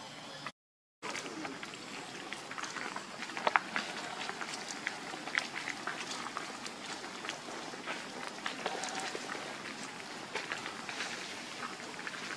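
Dry leaves rustle and crackle under a small monkey's feet.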